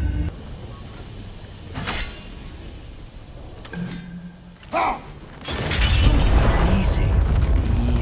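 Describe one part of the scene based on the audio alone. A heavy chain rattles and clanks.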